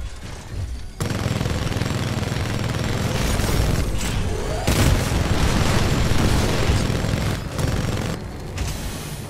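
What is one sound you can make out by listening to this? A large gun fires in rapid bursts with loud blasts.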